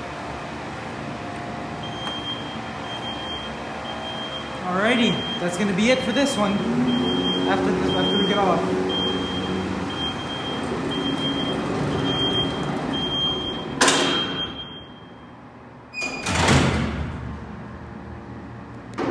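A freight elevator hums and rumbles as it travels.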